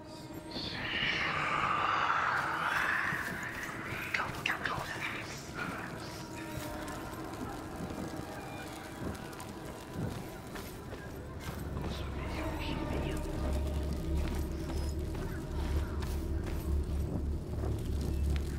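A torch flame crackles and hisses.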